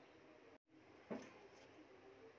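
A piece of fried bread is set down on a steel plate with a soft tap.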